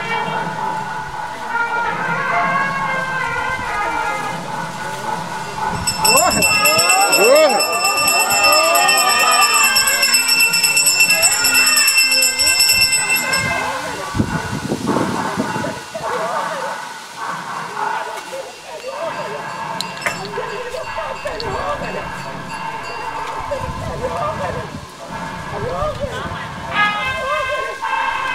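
Men chant steadily nearby, outdoors.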